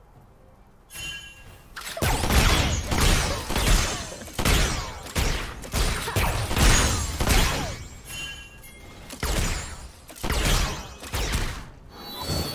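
Fighting effects in a video game clash and burst.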